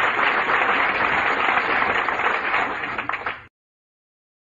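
An elderly man speaks calmly to an audience.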